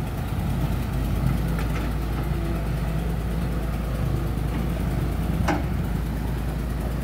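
An excavator's hydraulics whine as its arm swings.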